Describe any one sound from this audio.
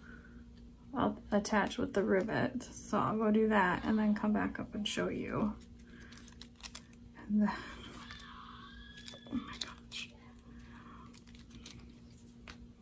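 Metal clasps and rings clink softly.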